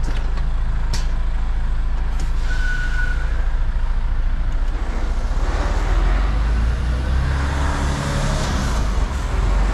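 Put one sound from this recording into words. A truck engine rumbles low and steady from inside the cab.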